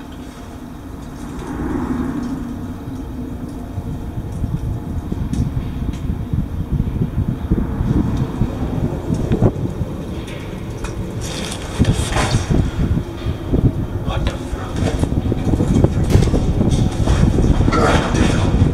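Clothing and shoes scrape and shuffle along a hollow pipe, with a booming echo.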